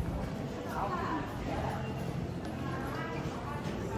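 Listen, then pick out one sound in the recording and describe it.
Suitcase wheels roll across a hard floor.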